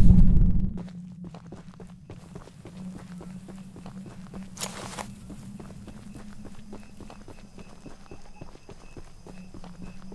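Footsteps crunch steadily over gravel and dry grass.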